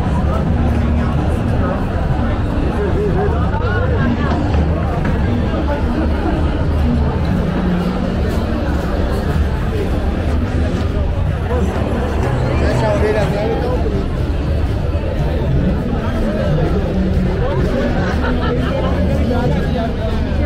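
A large outdoor crowd of men and women chatters and talks all around, busy and lively.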